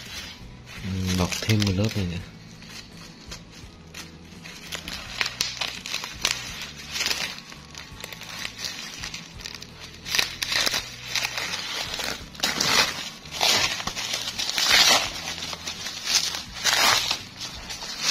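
Scissors snip through plastic wrapping.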